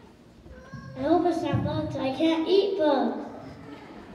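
A young boy speaks loudly into a microphone.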